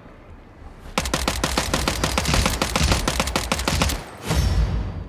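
An automatic rifle fires rapid bursts in a video game.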